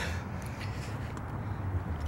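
A young man gulps water from a plastic bottle.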